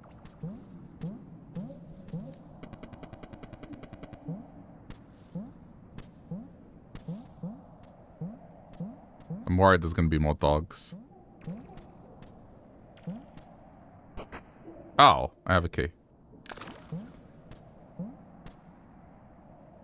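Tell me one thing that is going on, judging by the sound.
Soft, echoing plucked notes of video game music play throughout.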